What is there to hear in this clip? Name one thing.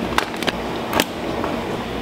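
A power strip switch clicks.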